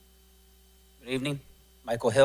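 A man speaks into a microphone, heard through loudspeakers in a large room.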